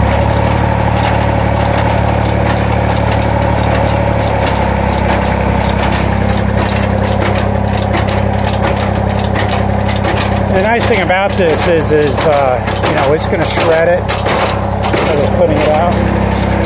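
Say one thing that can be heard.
Dirt and manure tumble from a loader bucket.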